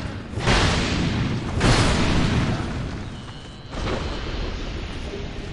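Ice shatters with loud crashing bursts.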